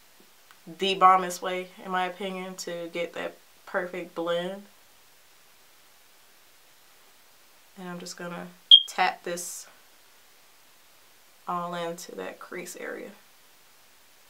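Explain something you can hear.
A woman speaks calmly and close by in short bursts.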